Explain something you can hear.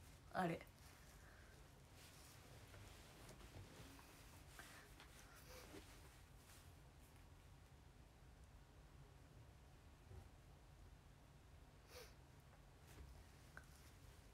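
A young woman speaks softly and calmly, close to the microphone.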